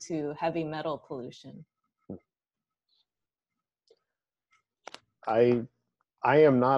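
A young woman speaks calmly, with pauses, heard through an online call.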